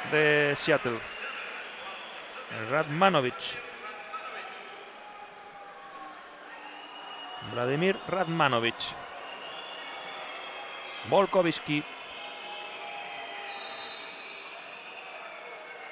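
A large crowd murmurs throughout a big echoing arena.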